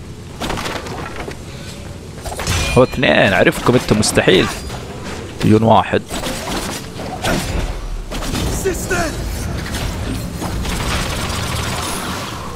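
Swords slash and clang in a fast fight.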